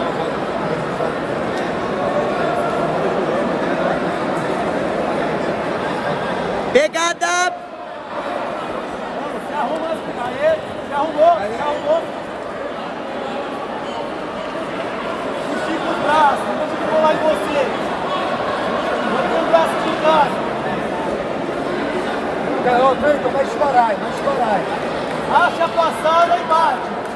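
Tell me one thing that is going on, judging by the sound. A large crowd murmurs and chatters in an echoing arena.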